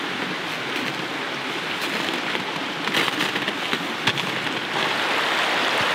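Boots crunch through snow in slow steps.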